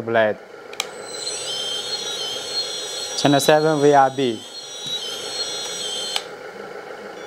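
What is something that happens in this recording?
A small electric motor whines steadily, then stops.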